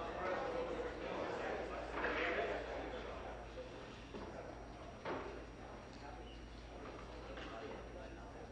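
A man speaks formally through a microphone in a large hall.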